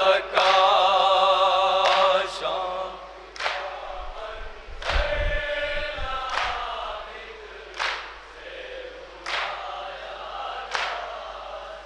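A group of men beat their chests in a slow, steady rhythm.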